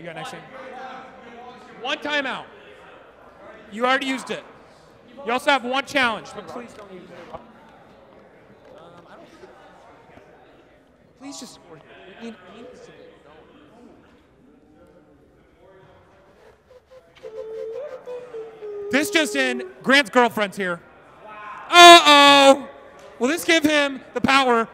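Young men talk and shout nearby in a large echoing hall.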